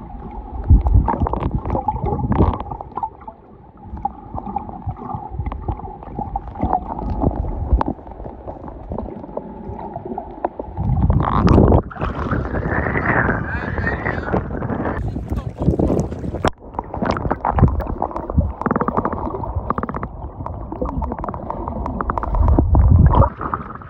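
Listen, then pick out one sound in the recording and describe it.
Water sloshes and rumbles, heard muffled from underwater.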